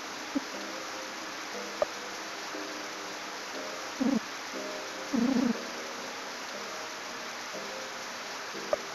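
Short electronic blips sound as menu choices are picked.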